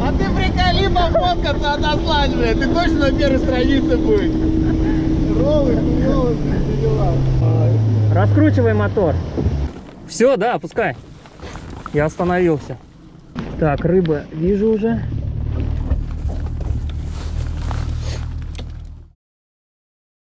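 A boat motor drones steadily.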